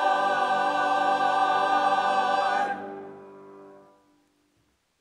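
A choir sings a final held chord that fades away in a large room.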